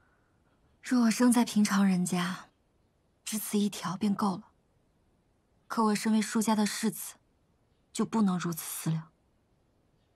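A second young woman answers quietly and thoughtfully, close by.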